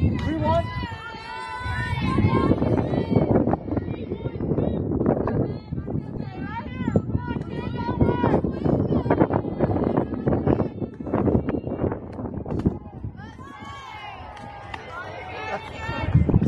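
Young women chant and cheer loudly nearby.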